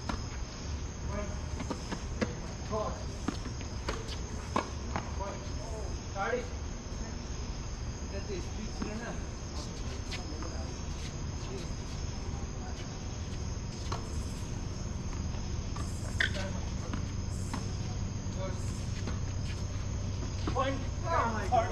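Men call out to each other at a distance.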